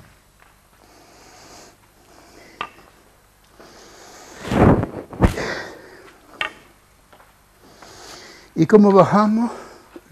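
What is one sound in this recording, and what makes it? Footsteps scrape on a rough stone floor.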